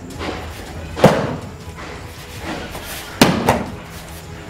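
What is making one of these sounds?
Bodies thud and slap onto a mat.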